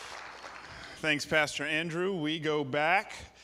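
A man speaks warmly into a microphone, heard over loudspeakers in a large hall.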